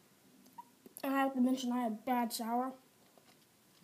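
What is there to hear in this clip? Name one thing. A young boy makes a high, wavering sound with his voice close by.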